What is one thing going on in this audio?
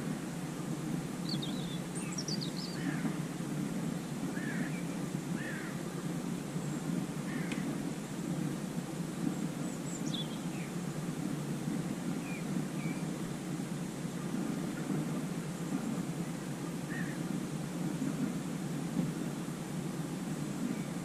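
Wind rumbles steadily across the microphone outdoors by the water.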